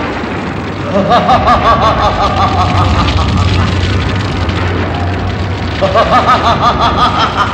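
A man laughs loudly and menacingly.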